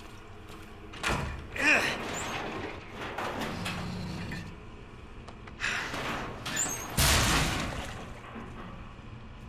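A heavy cabinet scrapes as it is pushed across the floor.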